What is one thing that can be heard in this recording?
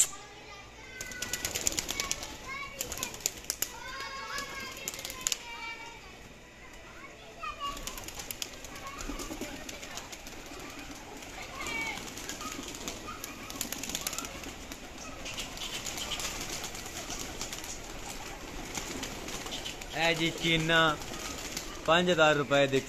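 Pigeons flap their wings in rapid bursts.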